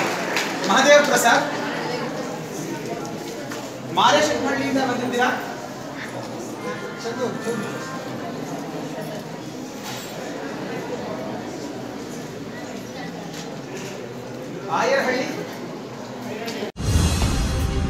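A small crowd murmurs quietly in the background.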